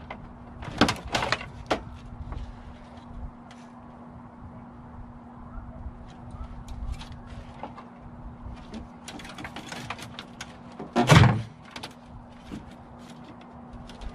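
Metal parts clank and rattle.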